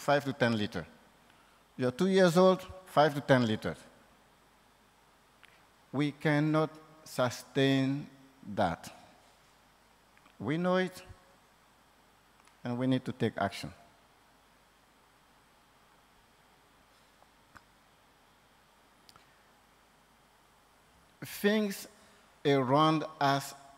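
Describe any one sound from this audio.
A man speaks calmly into a microphone, with pauses between phrases.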